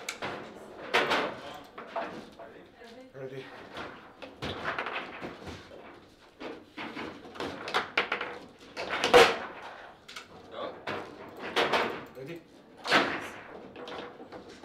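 A foosball ball clacks sharply against plastic player figures.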